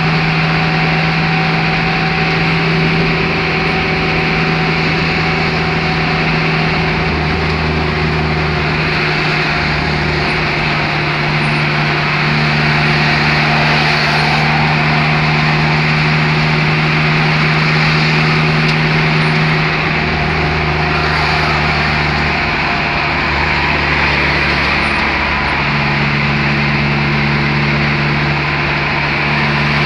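A car's engine and tyres hum from inside the cabin while it drives along a highway.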